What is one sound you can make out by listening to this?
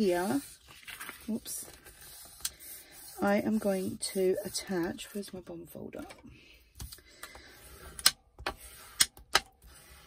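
Paper rustles and slides as it is handled.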